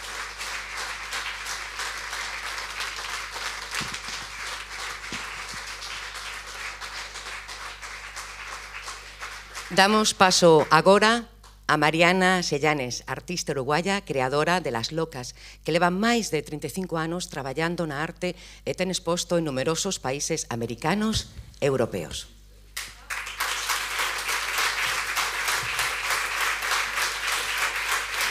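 A crowd applauds steadily in a room.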